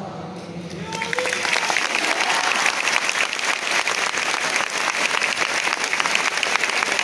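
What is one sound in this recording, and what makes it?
A large crowd bursts into loud applause.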